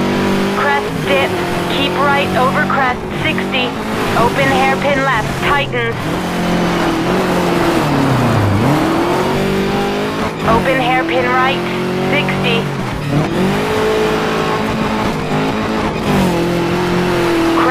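A rally car engine roars steadily, dropping in pitch briefly as it slows and then revving back up.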